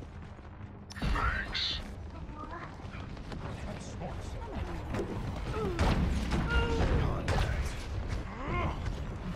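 Explosions and weapon blasts boom in bursts.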